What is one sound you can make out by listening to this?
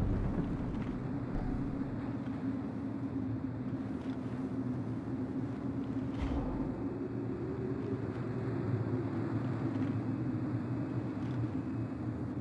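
A low magical hum drones steadily.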